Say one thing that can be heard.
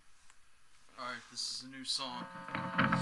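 A guitar is strummed.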